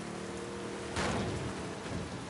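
A boat bumps hard against the shore.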